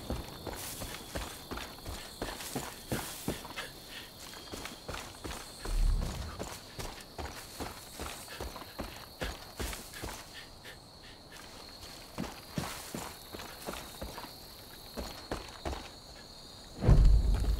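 Footsteps crunch and rustle through grass at a quick, steady pace.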